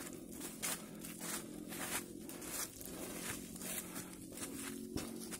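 Footsteps crunch through dry leaves.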